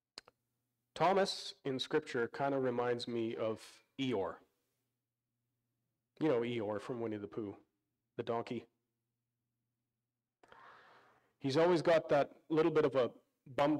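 A man speaks calmly through a microphone, pausing between phrases.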